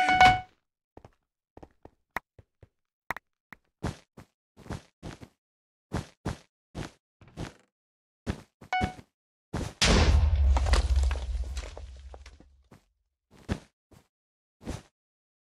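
Blocks are placed with quick, soft clicks, one after another.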